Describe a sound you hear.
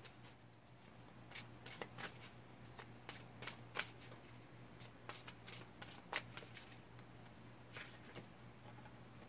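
Playing cards riffle and slap as a deck is shuffled by hand.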